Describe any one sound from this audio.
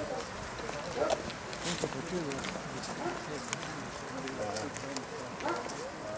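A group walks with footsteps on pavement.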